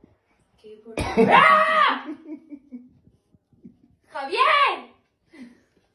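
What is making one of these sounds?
A young woman screams loudly nearby.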